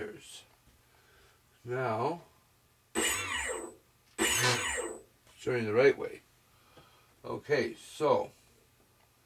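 A man talks in short bursts close by.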